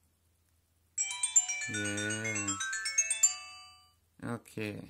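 A phone plays a short chiming startup tune.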